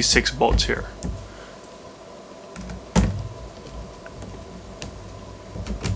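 Small plastic parts click and tap close by.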